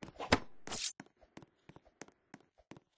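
Quick light footsteps patter on the ground.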